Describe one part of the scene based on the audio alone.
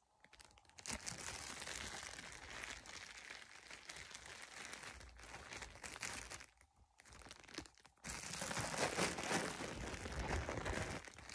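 Fabric rustles and brushes right up against the microphone.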